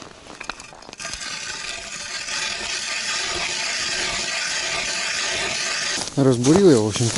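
An ice auger grinds steadily into ice.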